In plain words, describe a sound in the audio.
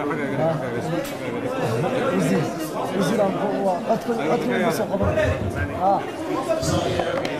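A middle-aged man speaks firmly into microphones close by.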